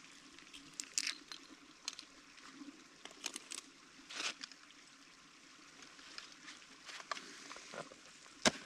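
Ice axes strike and chip into hard ice.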